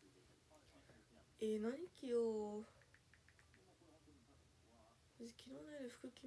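Fingernails tap on a phone.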